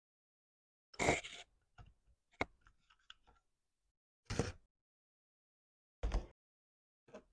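A box cutter clicks and slices through packing tape.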